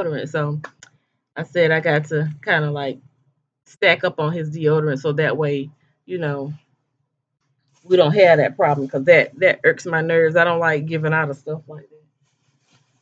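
A woman talks close to a microphone with animation.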